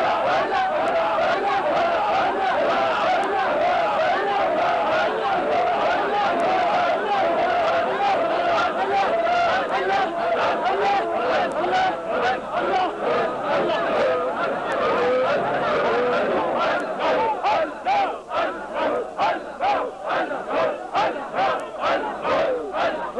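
A large crowd of men chants together loudly outdoors.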